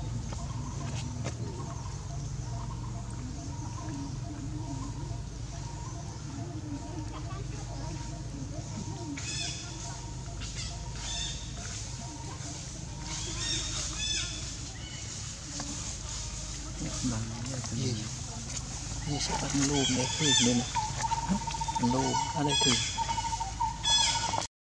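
A monkey chews food noisily close by.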